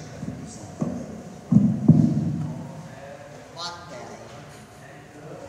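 A man talks quietly at a distance in a large echoing hall.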